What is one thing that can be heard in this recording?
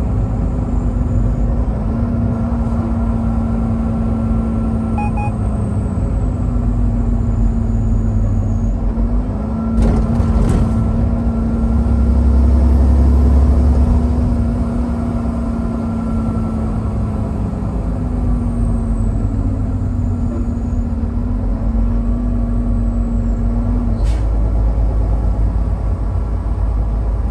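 A vehicle engine hums steadily while driving on a highway.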